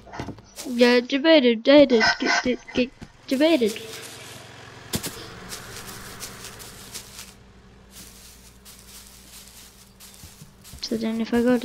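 Footsteps pad softly across grass.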